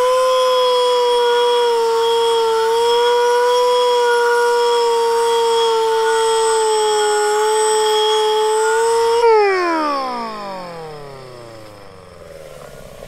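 An angle grinder whines steadily as it grinds metal, then winds down.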